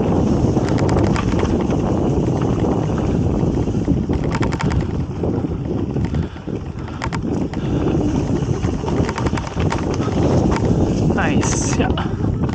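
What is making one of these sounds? Mountain bike tyres crunch and rattle over a dirt trail.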